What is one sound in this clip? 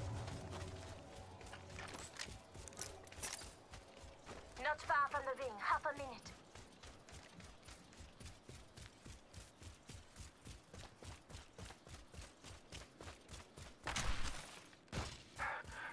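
Quick footsteps run over rocky ground.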